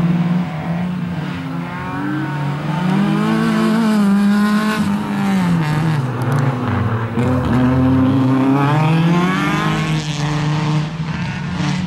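Tyres squeal on asphalt.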